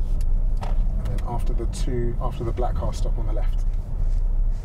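A man speaks calmly nearby inside a car.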